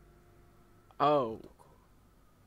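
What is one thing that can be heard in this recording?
A young woman gasps in surprise close to a microphone.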